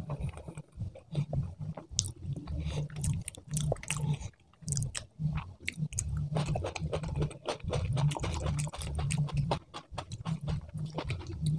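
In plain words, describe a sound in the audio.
A man chews food noisily and very close.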